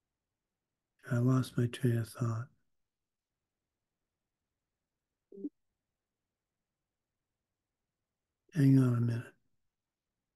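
An older man speaks calmly in short bursts over an online call.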